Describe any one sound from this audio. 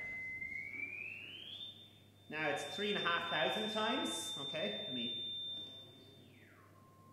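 A steady electronic tone glides up in pitch, holds, then drops lower.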